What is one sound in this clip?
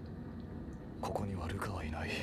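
A young man speaks quietly and calmly, close by.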